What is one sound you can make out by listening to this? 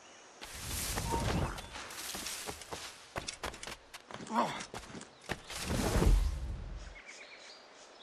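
Running footsteps scuff on stone.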